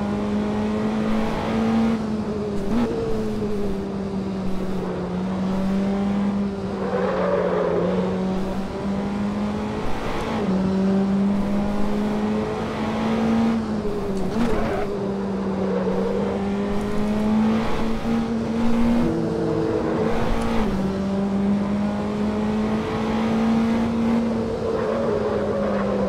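A race car engine drones steadily, its pitch shifting up and down with gear changes.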